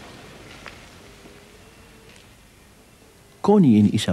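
Footsteps echo on a stone floor in a large hall.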